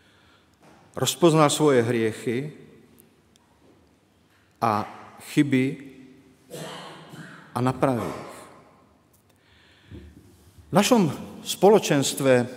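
An elderly man speaks calmly into a microphone in an echoing hall.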